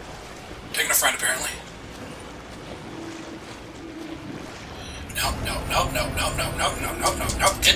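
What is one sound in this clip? Water splashes loudly with swimming strokes.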